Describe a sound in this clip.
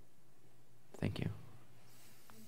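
A young man claps his hands together once.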